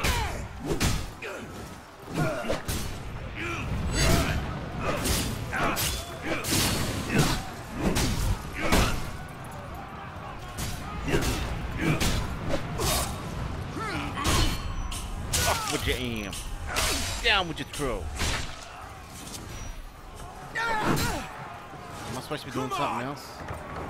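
Swords clang and strike in a rapid fight.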